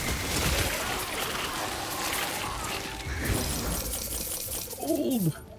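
Magic spells crackle and burst in a rapid, noisy video game battle.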